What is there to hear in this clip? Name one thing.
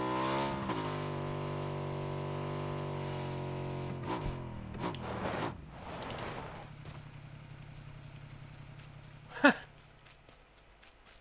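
A motorcycle engine drones steadily, then drops to a low idle and stops.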